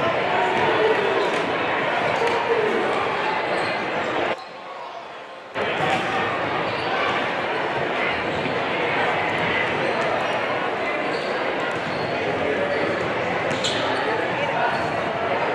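Basketballs bounce repeatedly on a wooden court.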